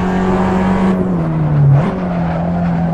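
A small four-cylinder hatchback engine slows and blips up on a downshift.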